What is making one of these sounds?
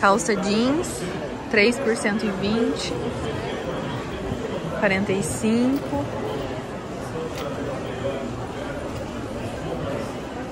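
Many men and women chatter quietly in the background.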